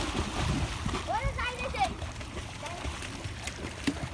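Water splashes as boys swim.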